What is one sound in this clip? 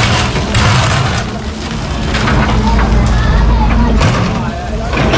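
An excavator engine rumbles steadily up close.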